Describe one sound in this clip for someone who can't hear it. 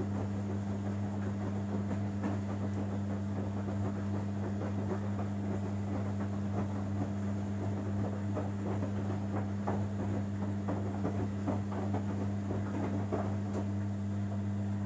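A front-loading washing machine drum tumbles wet laundry, with water sloshing.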